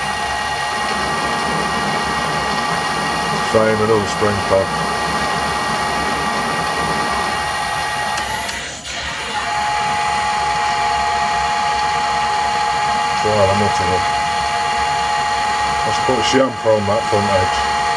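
A lathe motor whirs with a steady high whine.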